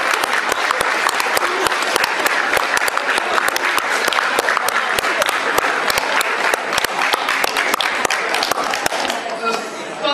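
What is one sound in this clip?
A crowd applauds loudly in a large hall.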